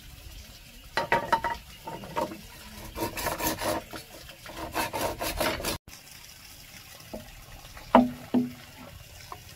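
A blade knocks against hollow bamboo.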